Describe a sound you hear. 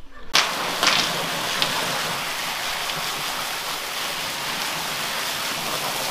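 A hose sprays a hard jet of water that splashes onto a wet floor.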